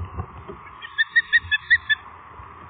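An osprey gives a series of sharp, high chirps.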